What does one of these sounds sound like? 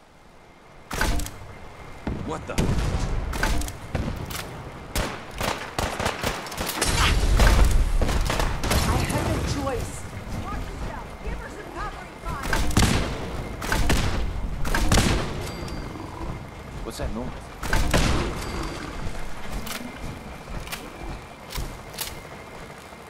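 Rapid gunfire bursts out in loud, repeated shots.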